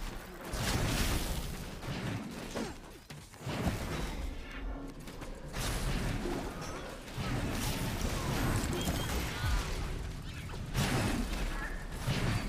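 Magical blasts and zaps burst in quick succession.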